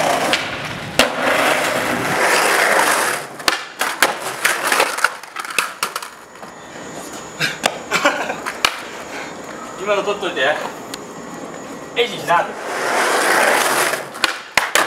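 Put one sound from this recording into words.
A skateboard clacks against the ground.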